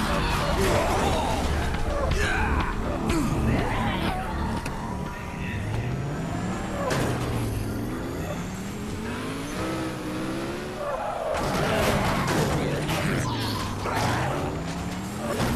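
A car thuds and crunches as it rams into bodies.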